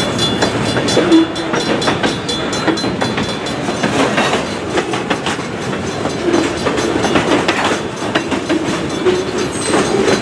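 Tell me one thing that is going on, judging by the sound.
Metal wheels squeal on the rails.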